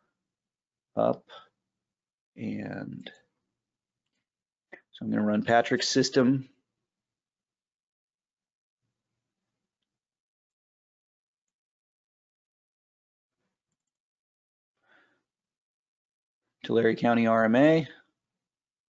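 A man speaks calmly into a microphone, heard as if over an online call, in short bursts with long pauses.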